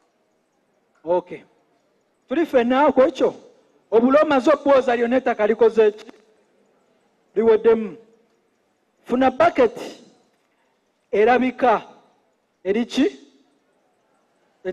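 A man speaks in short bursts with pauses, heard through a microphone.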